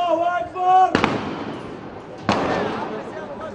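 Loud bangs ring out and echo between buildings.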